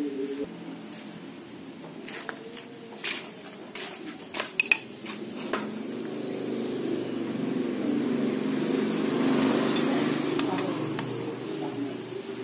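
Small metal parts click and rattle as they are handled.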